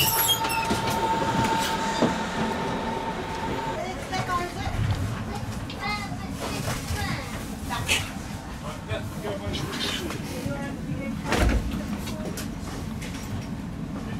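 A train rumbles low and steady.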